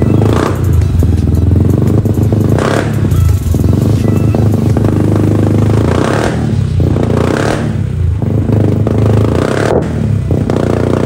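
A scooter engine revs up sharply several times.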